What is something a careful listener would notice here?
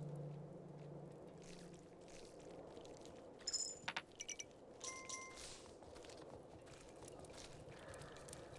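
A horse's hooves clop steadily along the ground.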